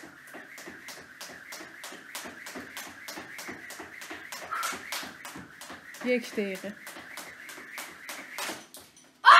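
A skipping rope whips and slaps the floor in a fast, steady rhythm.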